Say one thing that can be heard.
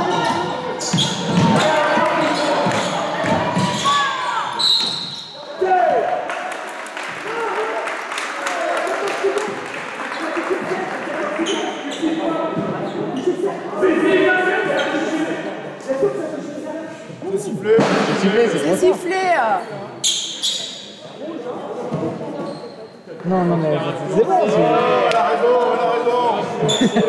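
Spectators chatter close by.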